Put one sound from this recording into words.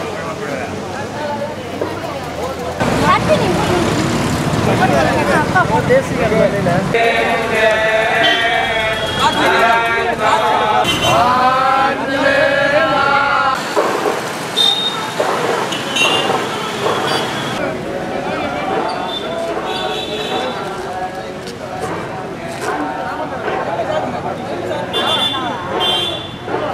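A crowd of men chatters and calls outdoors.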